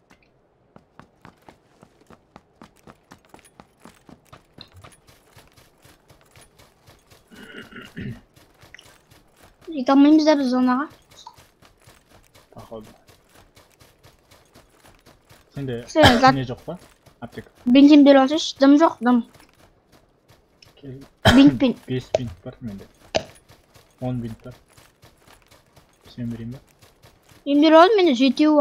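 Quick footsteps run over the ground.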